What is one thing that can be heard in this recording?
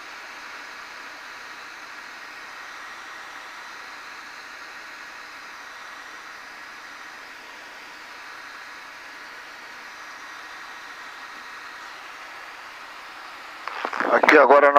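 A helicopter engine hums steadily, heard from inside the cabin.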